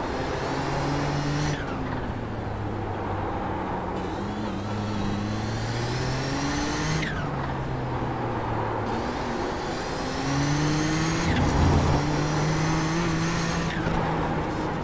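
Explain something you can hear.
Other racing car engines roar nearby.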